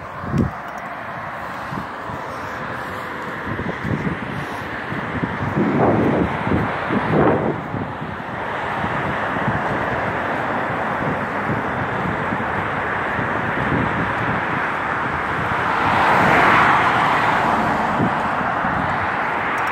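Wind blows hard against the microphone.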